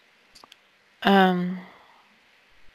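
A man hums a short, steady low tone through a microphone.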